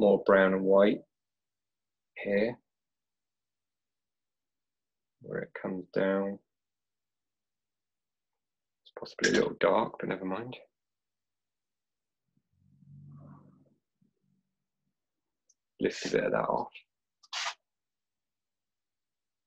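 A brush softly strokes paper.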